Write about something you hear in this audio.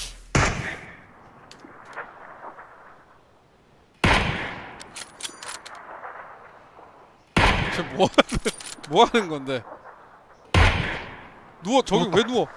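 Rifle shots ring out one at a time, each followed by a long echo.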